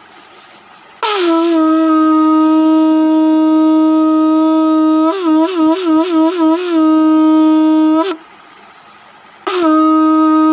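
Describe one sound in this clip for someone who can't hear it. A man blows a conch shell, making a loud, steady horn-like blast that wavers rapidly in the middle.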